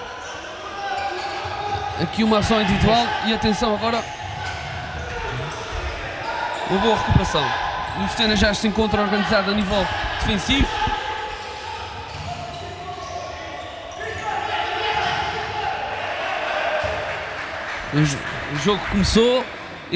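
A crowd of spectators murmurs and cheers.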